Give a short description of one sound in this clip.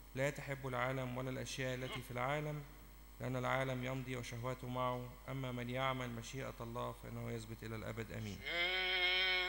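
A man reads out aloud over a microphone in an echoing hall.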